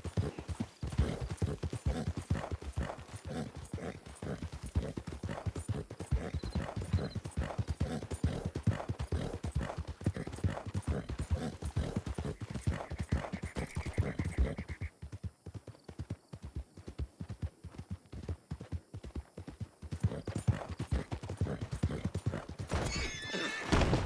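Horse hooves pound rapidly on a dirt track.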